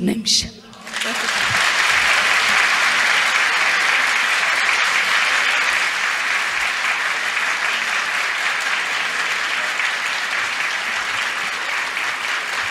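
A large crowd applauds steadily in a big room.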